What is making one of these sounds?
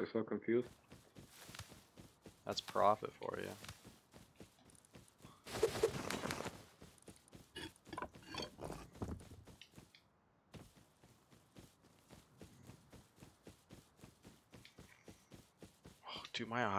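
Footsteps pad steadily through grass.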